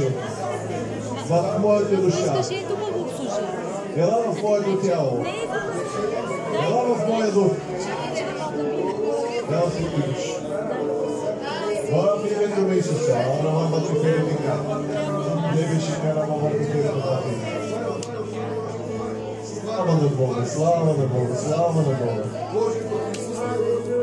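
A crowd sings and praises loudly in a large echoing hall.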